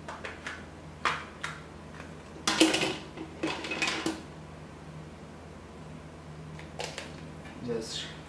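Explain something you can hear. A plastic phone back cover clicks and snaps as it is pried off and pressed back on.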